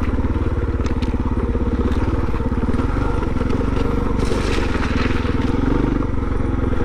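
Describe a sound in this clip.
A motorcycle engine chugs steadily up close.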